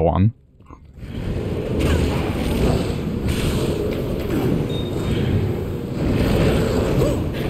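Magic spells hiss and crackle in a fight.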